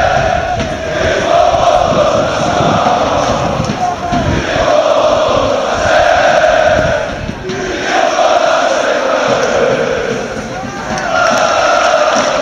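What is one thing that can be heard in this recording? A large crowd of fans chants loudly in unison in an open stadium.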